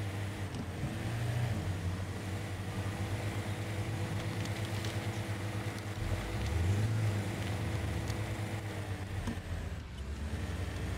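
Tyres crunch over rocky ground.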